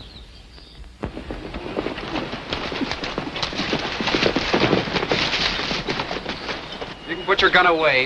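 Horses gallop past with pounding hooves.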